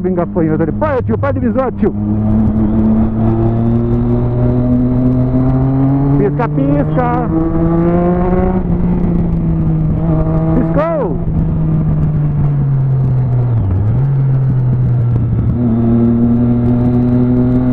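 A motorcycle engine hums steadily close by, its pitch rising and falling as it speeds up and slows down.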